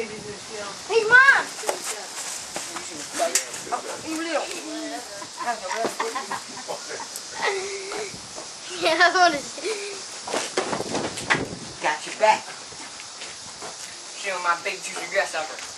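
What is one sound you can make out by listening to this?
A boy talks with animation close by.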